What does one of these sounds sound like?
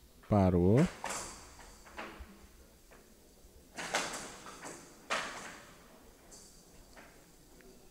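A rattling ball rolls and strikes bats on a table.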